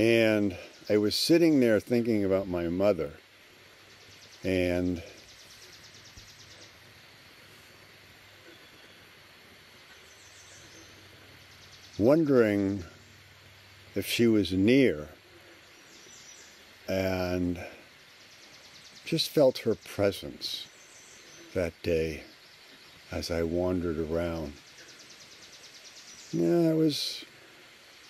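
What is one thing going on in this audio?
An elderly man speaks calmly and close by, with long pauses.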